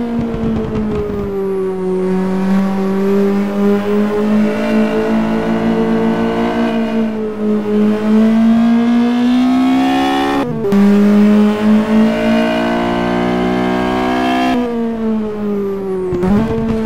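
A racing car engine roars loudly, rising in pitch as it speeds up and dropping briefly with each gear change.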